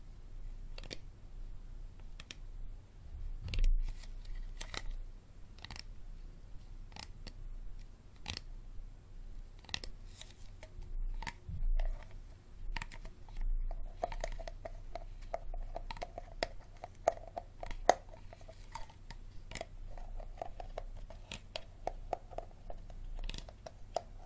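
Fingers tap and scratch on a plastic water bottle close up.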